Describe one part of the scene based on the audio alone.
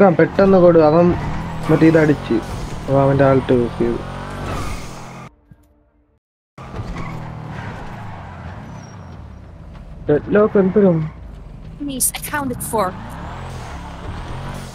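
A car engine roars and revs as the car speeds along.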